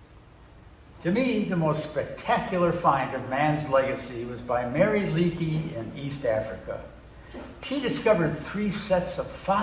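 A middle-aged man reads aloud with expression in a hall with some echo.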